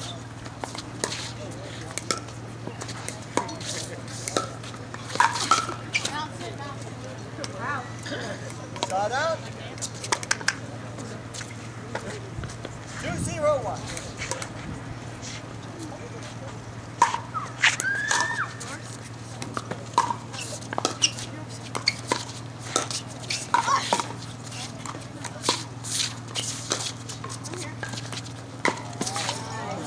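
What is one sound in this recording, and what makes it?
Paddles hit a plastic ball back and forth with sharp pops.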